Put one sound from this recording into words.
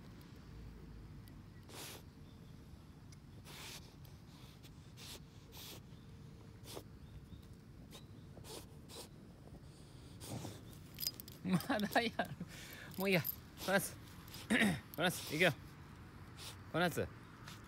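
A dog sniffs loudly at the soil in short bursts, close up.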